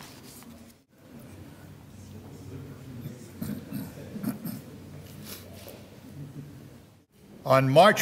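Men and women chat quietly in a murmur nearby.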